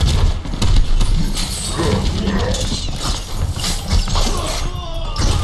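A heavy gun fires rapid bursts with loud booming thuds.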